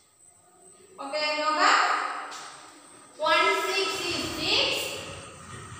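A woman speaks loudly and clearly, as if teaching.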